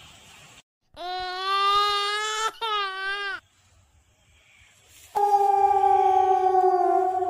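A man makes high, squeaky, wavering tones through pursed lips, in short bursts.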